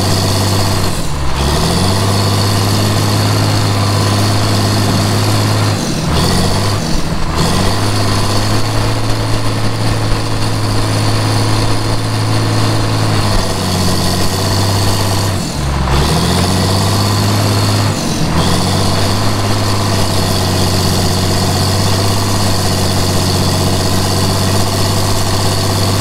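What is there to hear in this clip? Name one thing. Soil and brush scrape and crunch under a bulldozer blade.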